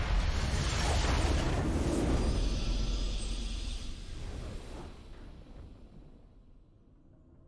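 A triumphant fanfare swells and then fades away.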